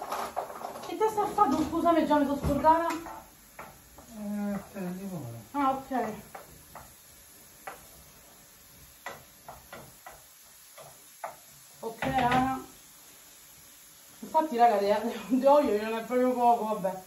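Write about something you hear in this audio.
A woman speaks with animation from across the room.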